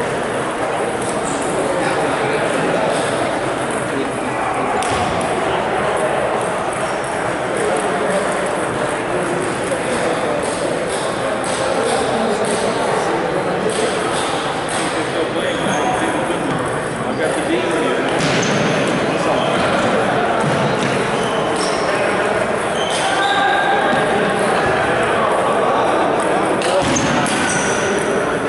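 A table tennis ball clicks sharply back and forth off paddles and the table in a large echoing hall.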